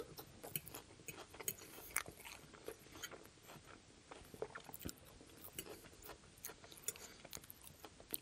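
A man chews food wetly and smacks his lips close to a microphone.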